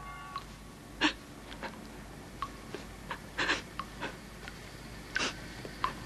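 A young man sniffles and sobs quietly.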